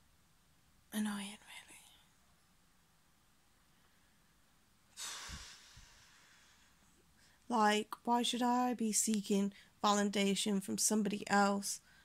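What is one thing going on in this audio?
A young woman speaks close up, calmly and softly.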